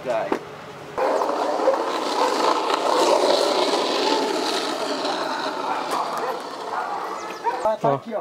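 Skateboard wheels roll on asphalt.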